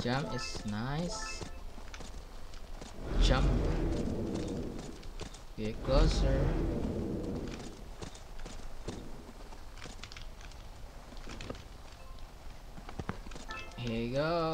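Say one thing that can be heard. A horse's hooves thud rhythmically as it gallops.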